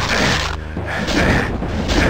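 A monster growls and snarls.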